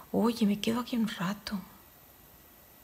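A woman speaks drowsily and close by.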